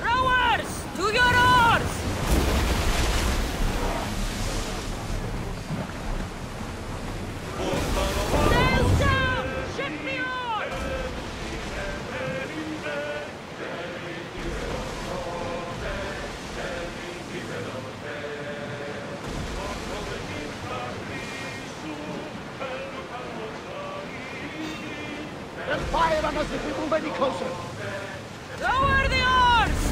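Waves splash and rush against a ship's hull.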